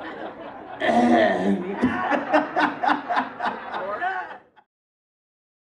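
A man sings through a microphone.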